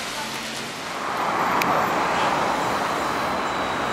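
A motor scooter engine whirs past.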